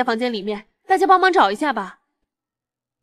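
A woman asks for help in a calm voice.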